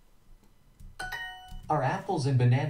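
A bright chime rings out briefly.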